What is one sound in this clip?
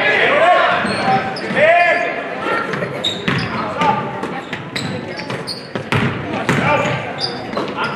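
A crowd cheers and shouts in an echoing gym.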